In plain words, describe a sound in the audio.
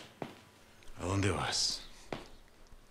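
A man speaks firmly from a distance.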